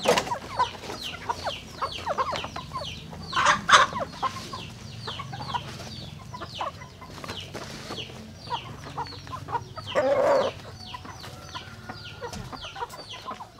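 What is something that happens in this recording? Chickens cluck close by.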